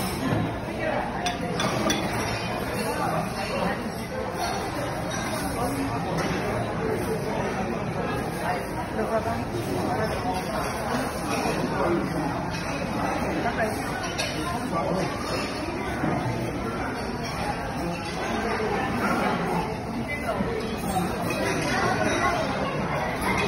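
Many people chatter in a large room.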